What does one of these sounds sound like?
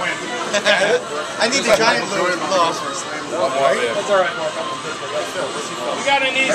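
Several men talk and shout with excitement close by, voices overlapping.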